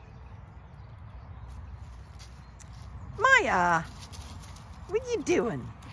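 Cats' paws rustle through dry leaves.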